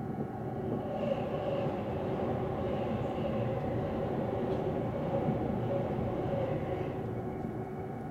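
A passing train rushes by close outside with a loud whoosh.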